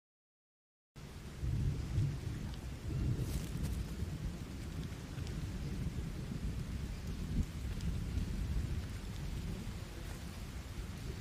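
Footsteps crunch over leaves and soil on the forest floor.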